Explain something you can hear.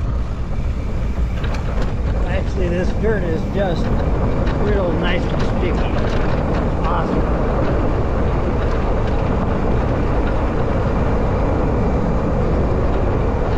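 Tyres crunch and rumble over a dirt road.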